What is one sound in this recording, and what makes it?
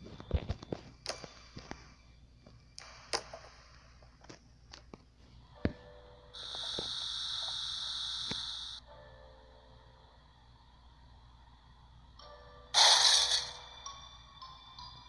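Short, bouncy game sound effects blip and chime.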